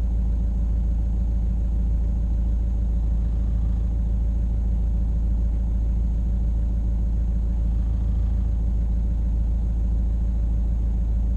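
A heavy diesel engine rumbles steadily, heard from inside a cab.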